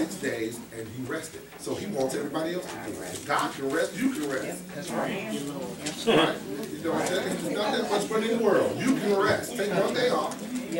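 A man speaks with animation to a room, his voice echoing slightly.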